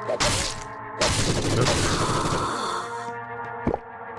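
A heavy weapon strikes with a loud, wet crunching blow.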